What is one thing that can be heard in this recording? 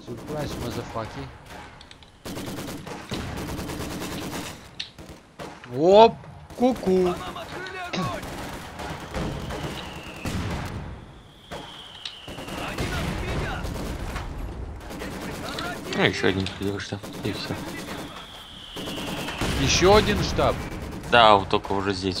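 Explosions boom in bursts.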